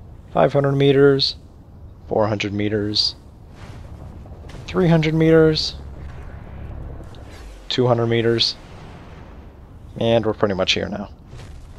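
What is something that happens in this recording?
Air rushes past in a steady whoosh.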